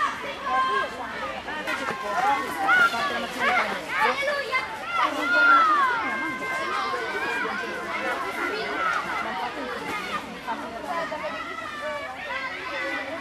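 A crowd of children chatters and calls out outdoors.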